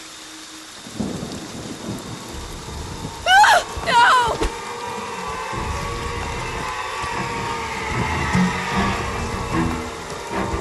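Heavy footsteps tramp quickly over wet ground.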